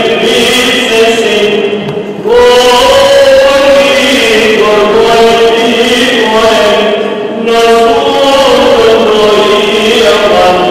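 Men chant a slow, drawn-out melody in a large echoing hall.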